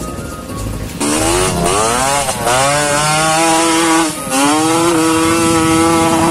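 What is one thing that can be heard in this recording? Dirt bike engines rev loudly, rising and falling in pitch.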